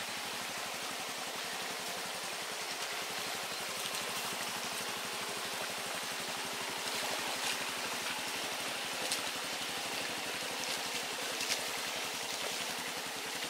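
A motorcycle engine chugs steadily at low speed.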